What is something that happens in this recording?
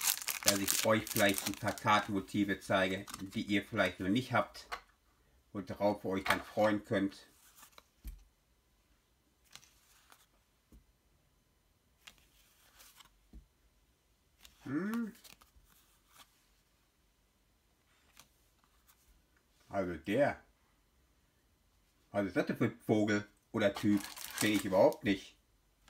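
Glossy trading cards rustle and slide against each other as they are handled.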